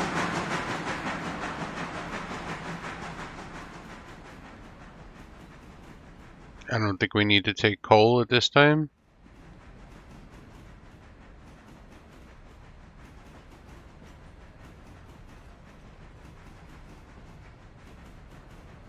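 A steam locomotive chuffs in a quick rhythm and slowly fades.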